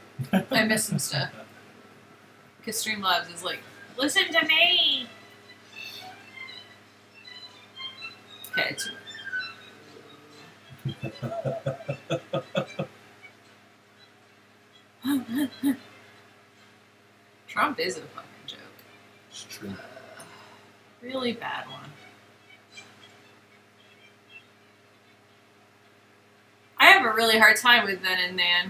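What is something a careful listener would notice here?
A woman laughs over a microphone.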